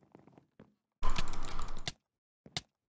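Sword blows land in a quick scuffle.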